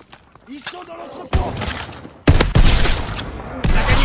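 A pump-action shotgun fires.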